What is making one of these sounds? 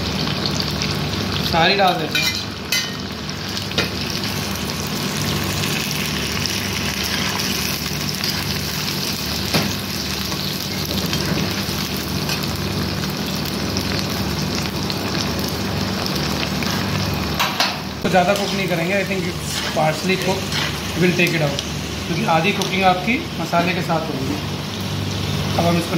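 A metal spatula scrapes and stirs in a pan.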